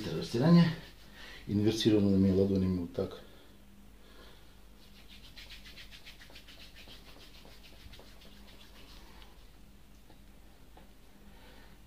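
Hands rub and press on bare skin.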